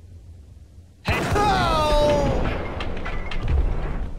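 A pistol fires several shots in an echoing tiled corridor.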